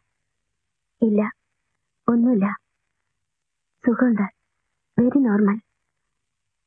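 A woman answers quietly and hesitantly, close by.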